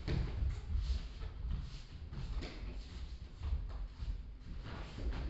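Bare feet thump and shuffle on a padded mat.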